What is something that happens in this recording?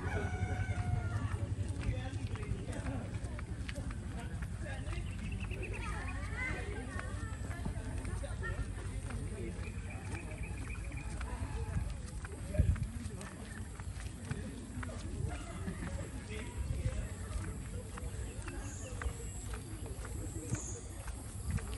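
Several people walk with soft footsteps on a paved path outdoors.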